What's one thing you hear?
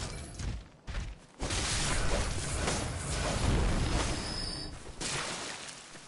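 A blade slashes and thuds against a large creature.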